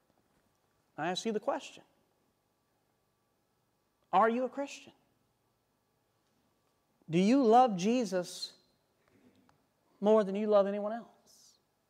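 A man speaks slowly and clearly into a microphone, with long pauses.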